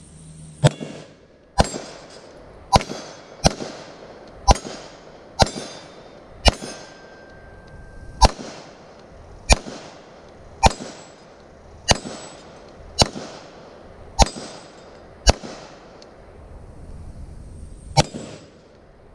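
A handgun fires a long series of sharp shots that echo outdoors.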